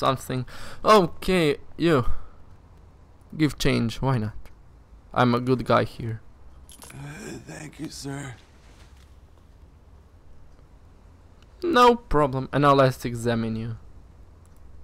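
A man speaks calmly and in a low voice.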